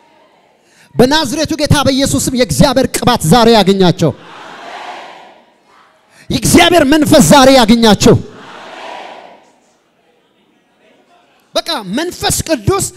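A man preaches loudly and with passion through a microphone, heard over loudspeakers in a large hall.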